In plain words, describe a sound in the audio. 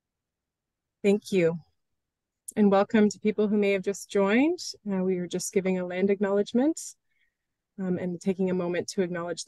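A middle-aged woman speaks calmly through an online call.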